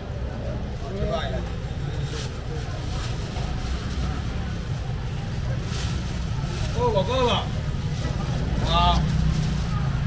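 A man calls out nearby in short bursts.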